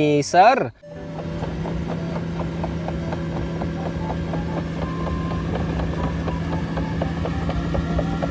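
A paving machine's diesel engine rumbles steadily at idle.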